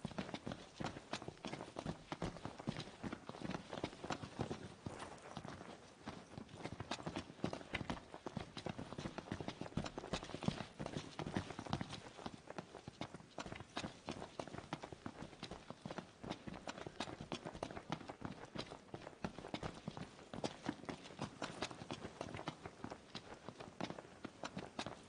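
Quick footsteps run on hard pavement.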